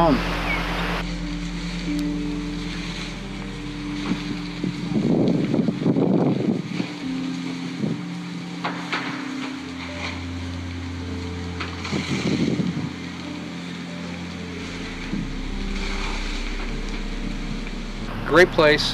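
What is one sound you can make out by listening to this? A large fire roars and crackles.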